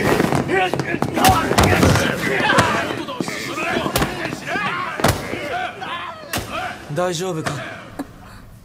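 Several men shout and talk excitedly close by.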